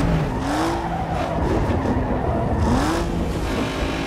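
Tyres screech as a car slides through a bend.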